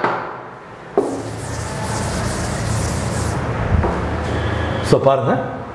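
A board eraser rubs steadily across a chalkboard.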